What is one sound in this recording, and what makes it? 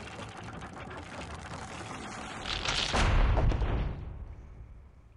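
A heavy wooden mast crashes down onto a ship's deck.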